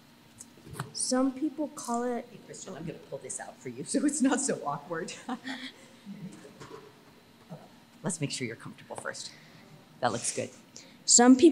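An elderly woman speaks quietly near a microphone.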